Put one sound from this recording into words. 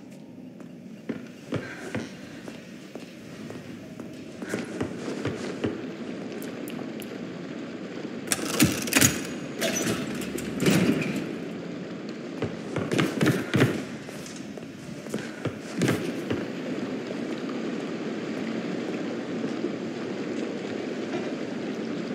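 Footsteps thud on wooden stairs and floorboards.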